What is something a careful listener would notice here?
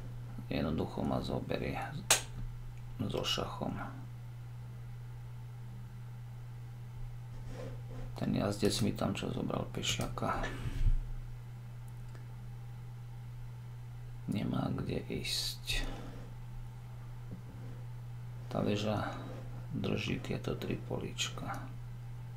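A man speaks calmly and closely into a microphone, in bursts with pauses.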